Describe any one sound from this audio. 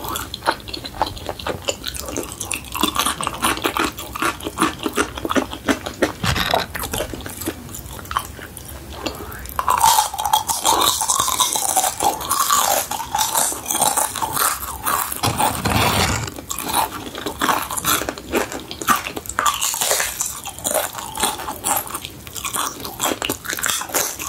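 A young woman chews crunchy food close to a microphone.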